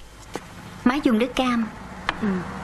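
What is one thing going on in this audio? A young woman speaks sharply.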